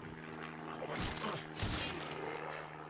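A blade slashes and strikes with sharp hits.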